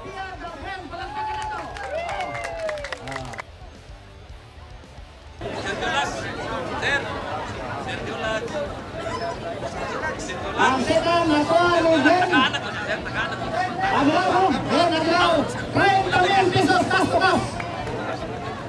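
A man speaks with animation through a microphone and loudspeaker.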